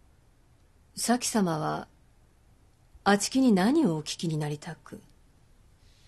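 A woman speaks calmly and formally.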